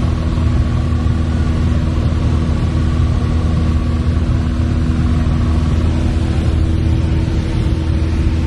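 A small plane's propeller engine drones loudly and steadily from inside the cabin.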